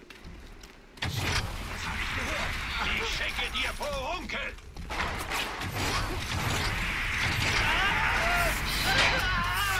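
Flames roar in bursts from a fire-spraying weapon.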